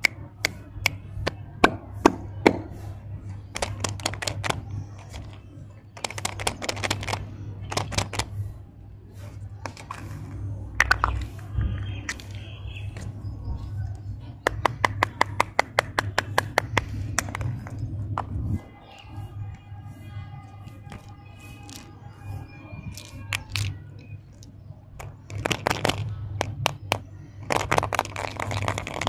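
Plastic capsules click and snap open in someone's hands.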